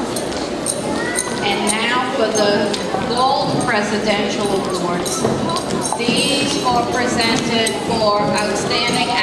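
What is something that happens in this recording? A woman speaks through a loudspeaker microphone.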